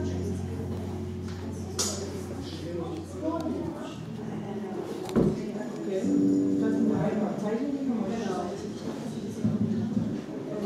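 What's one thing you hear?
An acoustic guitar strums.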